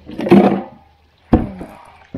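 A plastic cooler lid thumps shut.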